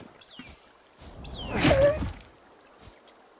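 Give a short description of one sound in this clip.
A weapon swings through the air with a loud whoosh.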